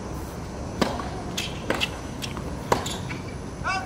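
A tennis ball is struck sharply by rackets in a rally.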